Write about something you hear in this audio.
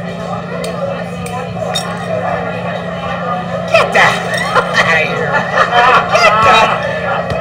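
A group of men chatter in the background.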